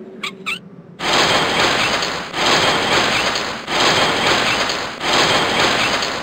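A metal crank turns with a steady grinding rattle.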